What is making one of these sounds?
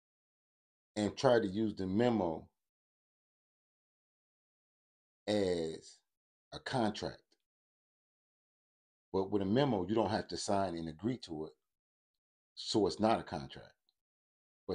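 A man speaks calmly into a nearby microphone, in short bursts with pauses.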